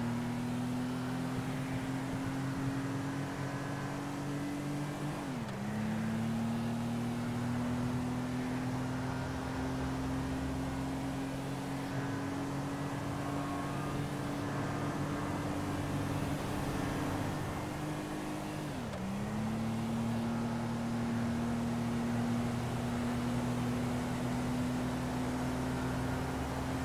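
A car engine hums steadily at speed, dropping in pitch twice as the gears shift.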